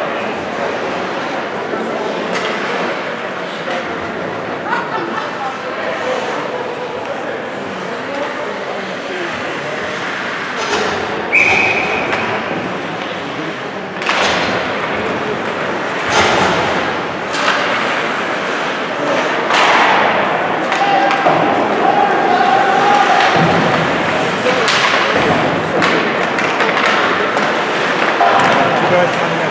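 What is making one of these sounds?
A crowd of spectators murmurs and cheers in a large echoing rink.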